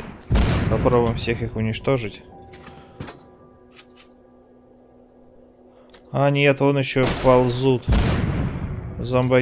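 A heavy machine gun fires in loud bursts.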